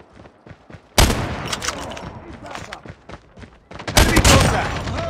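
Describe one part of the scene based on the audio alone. A rifle fires loud, sharp shots that ring out.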